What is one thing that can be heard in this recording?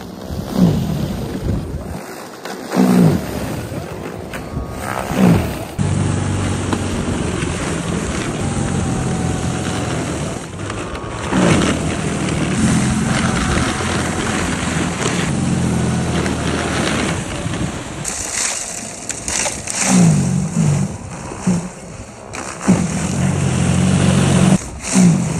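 A snow blower's auger churns through snow.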